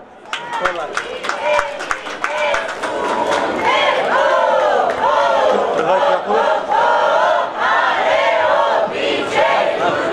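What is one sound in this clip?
A group of men and women sing a lively folk song together outdoors.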